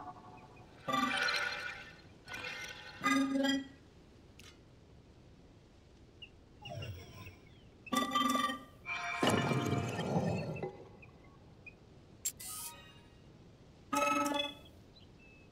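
Bright chiming tones ring out in short bursts.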